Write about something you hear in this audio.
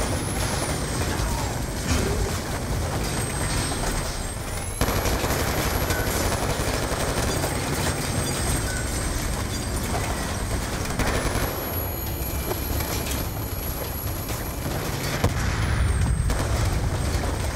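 Bullets smack and crack against thick glass.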